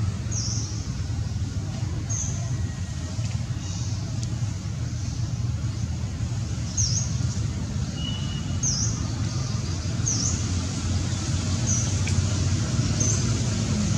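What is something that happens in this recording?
Dry leaves rustle as young monkeys scramble about.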